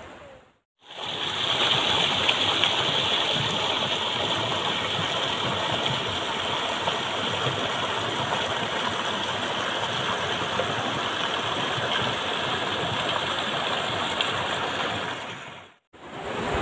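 Floodwater rushes and churns loudly over a road edge.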